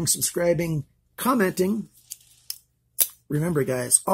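A folding knife blade clicks open and shut.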